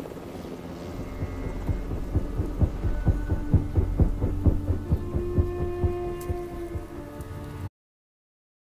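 Helicopter rotor blades thump steadily overhead.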